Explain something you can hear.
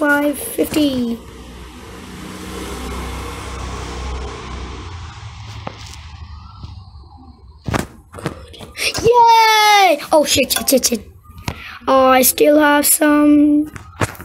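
A child shouts and exclaims excitedly close to a microphone.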